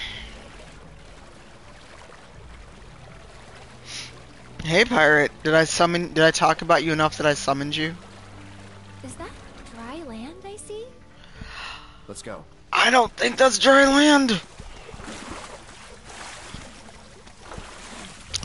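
Water splashes as animals wade through it.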